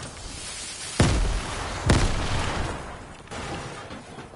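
A loud blast bursts out and rumbles.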